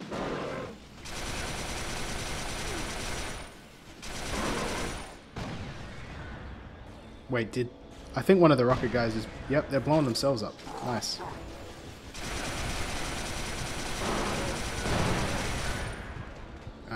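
A heavy machine gun fires long rapid bursts.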